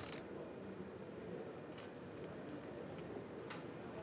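Poker chips click softly against each other.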